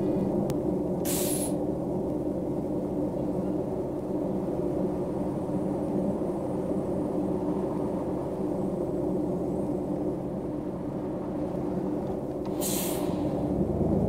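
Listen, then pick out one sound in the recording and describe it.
Air brakes hiss briefly.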